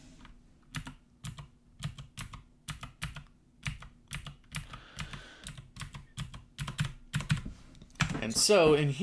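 Computer keys click rapidly.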